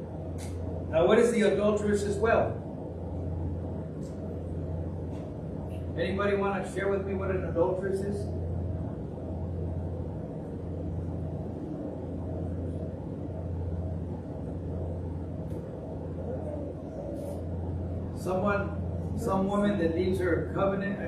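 A man speaks through a microphone in short bursts with pauses.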